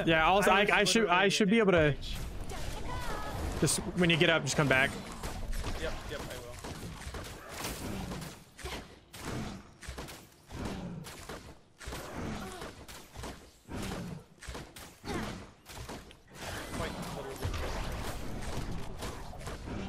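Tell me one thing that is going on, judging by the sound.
Game weapons fire and hit with sharp bursts.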